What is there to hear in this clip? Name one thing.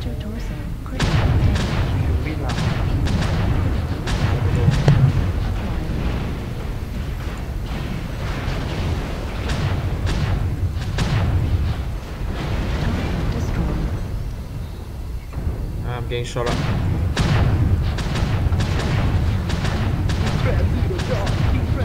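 Weapons fire in rapid bursts.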